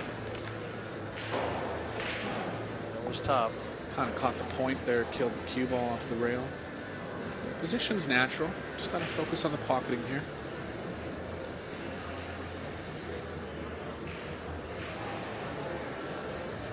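A crowd murmurs softly in a large hall.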